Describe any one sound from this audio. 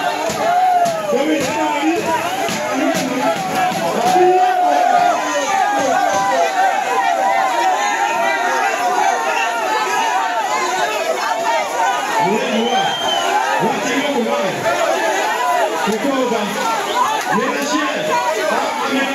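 A large crowd cheers and screams loudly throughout.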